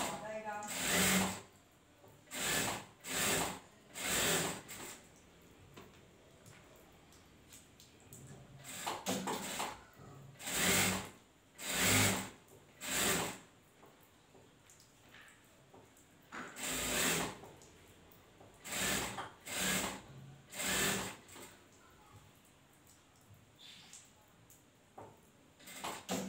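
A sewing machine runs in short bursts, whirring quickly.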